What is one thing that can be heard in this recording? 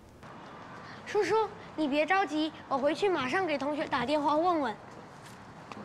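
A young boy speaks quickly and eagerly.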